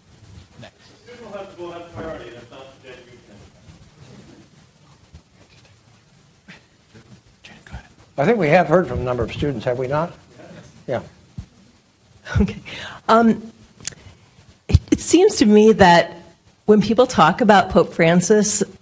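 An elderly man speaks calmly into a microphone in a large room.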